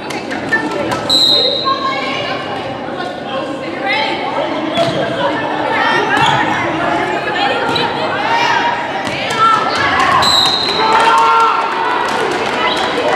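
Young women call out and shout to each other during play.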